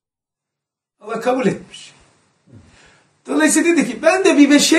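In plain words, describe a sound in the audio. An elderly man speaks calmly and warmly nearby.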